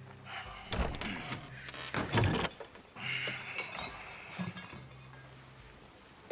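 A wooden crate thuds onto a cart bed.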